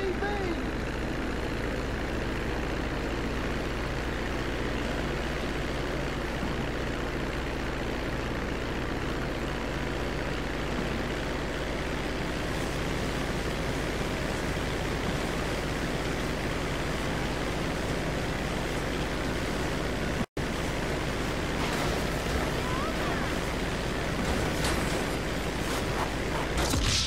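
A propeller plane's engine drones steadily and revs up as the plane takes off.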